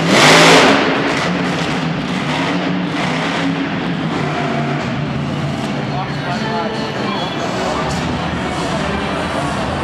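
A monster truck engine roars loudly, echoing through a large arena.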